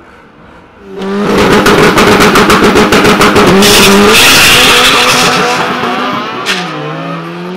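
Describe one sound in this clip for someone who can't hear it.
Car engines roar loudly as cars launch and speed away.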